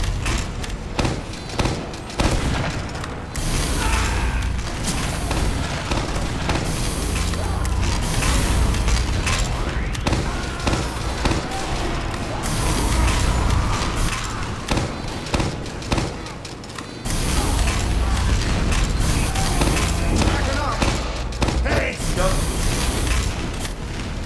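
Gunshots and explosions crack nearby.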